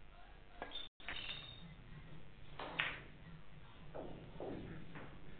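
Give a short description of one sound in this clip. Billiard balls click against each other and knock over small wooden pins.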